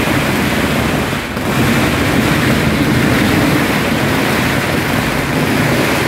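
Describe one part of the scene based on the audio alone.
Firecrackers crackle and bang in a rapid, dense barrage nearby.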